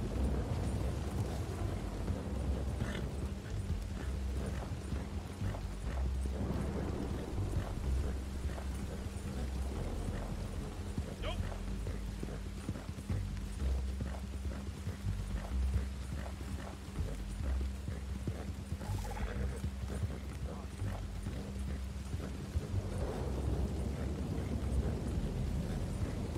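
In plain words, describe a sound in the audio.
Horse hooves thud quickly on soft ground at a gallop.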